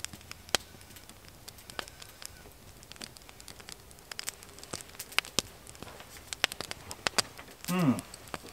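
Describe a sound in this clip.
Flint strikes steel in sharp, repeated clicks.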